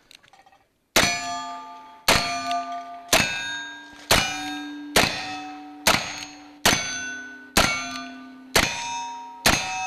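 Revolvers fire loud gunshots one after another outdoors, each shot ringing out.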